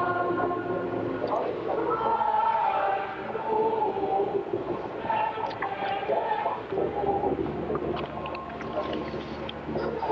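A choir sings slowly in a large echoing hall.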